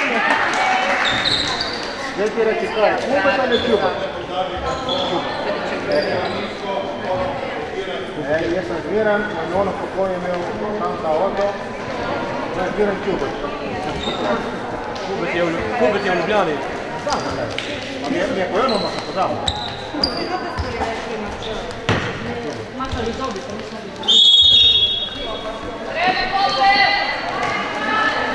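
Many young voices chatter and shout in a large echoing hall.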